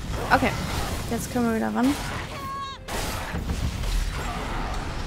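Magic blasts burst and crackle in a fight.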